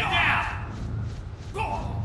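A gunshot rings out close by.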